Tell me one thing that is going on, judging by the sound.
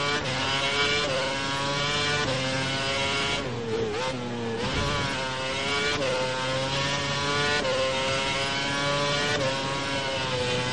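A racing car engine screams at high revs, shifting up through the gears and dropping pitch when braking.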